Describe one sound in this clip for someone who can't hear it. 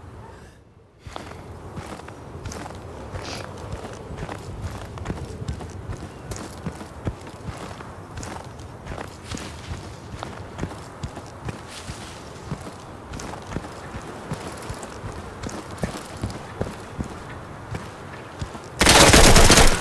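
Footsteps crunch over snow and gravel at a steady walking pace.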